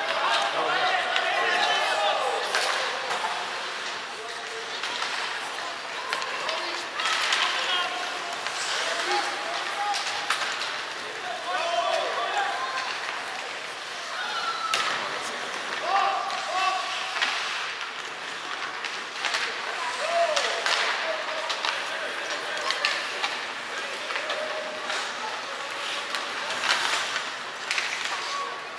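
Young players shout and call out across the rink.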